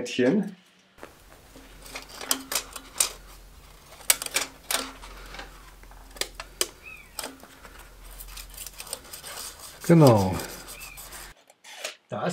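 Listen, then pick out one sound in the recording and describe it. A cylinder mower's reel ticks against its bedknife as it is turned by hand.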